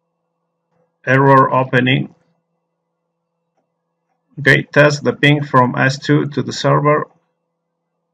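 A man speaks calmly into a close microphone, in short phrases.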